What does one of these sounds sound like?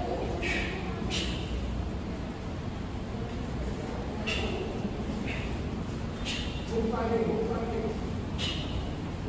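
Bare feet thud and slide softly on a padded mat.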